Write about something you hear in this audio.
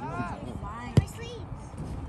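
A foot strikes a soccer ball with a thump.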